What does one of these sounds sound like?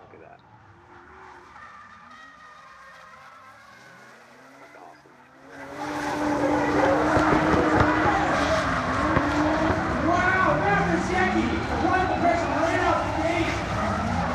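Tyres squeal as cars slide around a track.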